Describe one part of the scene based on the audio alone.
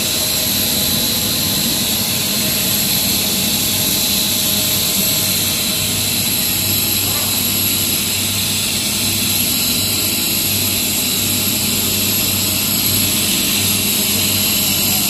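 A plastic pipe extruder hums and whines as it runs.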